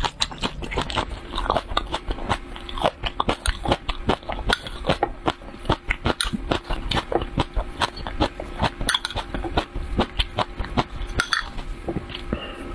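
A metal spoon scrapes and clinks against a glass bowl.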